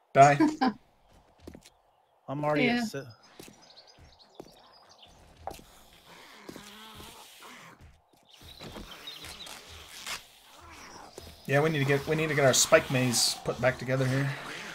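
Footsteps crunch on dry ground.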